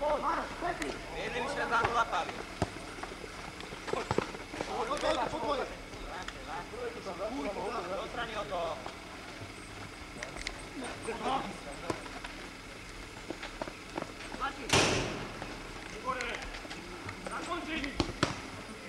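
Men shout to each other outdoors during a football game in the distance.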